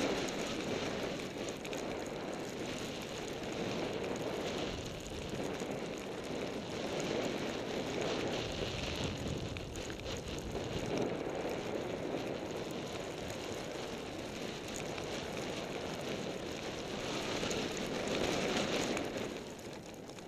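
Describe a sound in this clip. Skis hiss steadily through soft snow.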